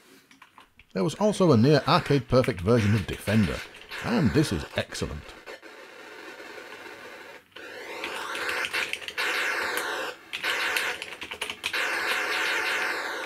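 Electronic arcade game sounds warble, zap and buzz loudly.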